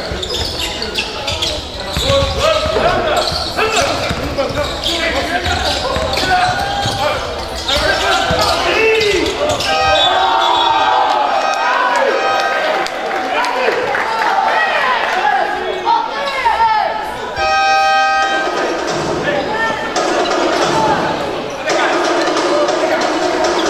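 Young men shout and call out to each other in an echoing hall.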